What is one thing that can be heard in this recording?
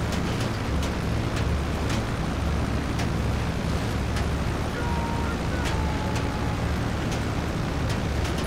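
Propeller engines of a cargo plane drone steadily.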